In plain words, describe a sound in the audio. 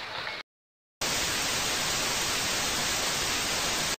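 Loud static hisses steadily.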